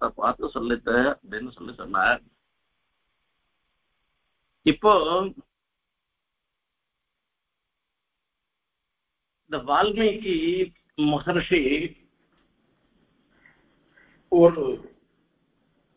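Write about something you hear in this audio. An elderly man speaks calmly over an online call, in short phrases with long pauses.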